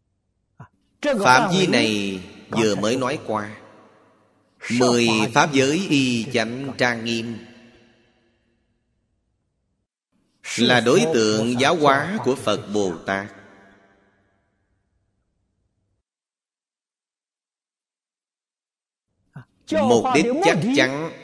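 An elderly man speaks calmly into a close microphone, in bursts with long pauses.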